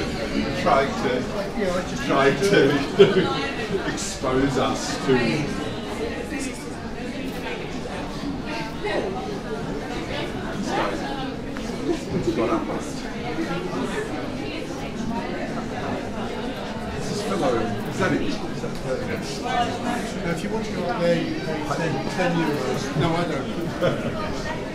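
A crowd of men and women chatters nearby in an echoing passage.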